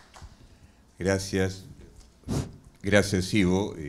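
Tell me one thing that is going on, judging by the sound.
A man speaks calmly into a microphone.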